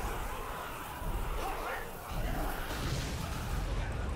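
A burst of sparks crackles and explodes.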